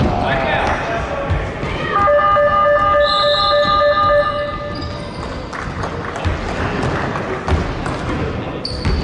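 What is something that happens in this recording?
Spectators talk faintly at the side of the hall.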